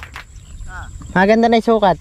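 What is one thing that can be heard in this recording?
A fish flaps and thrashes in the grass.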